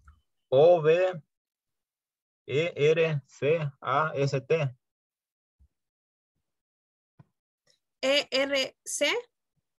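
A man speaks calmly and clearly into a close microphone, pausing between words.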